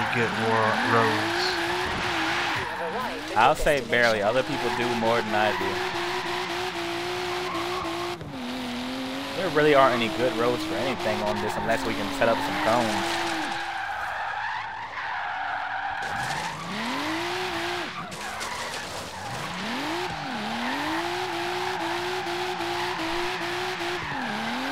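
A car engine revs high and shifts gears repeatedly.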